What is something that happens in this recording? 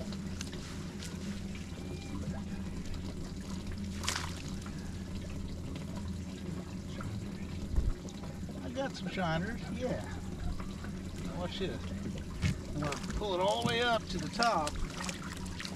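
Water drips and splashes from a cast net as it is hauled out of a lake.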